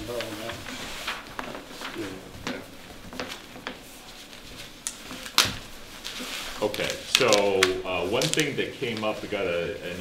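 Paper rustles and crinkles as large sheets are rolled up.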